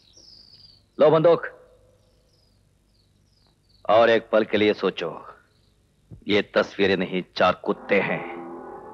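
A man speaks sternly and close by.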